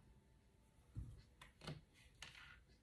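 A card is set down on a table with a soft tap.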